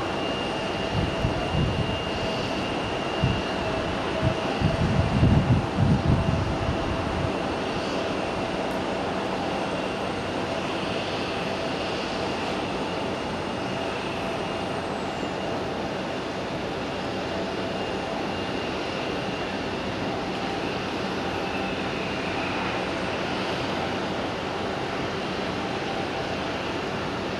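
A jet engine roars steadily as a plane approaches and lands.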